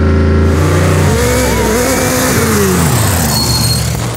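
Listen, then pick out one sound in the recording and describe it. A buggy speeds past close by with a roaring engine that rises and falls.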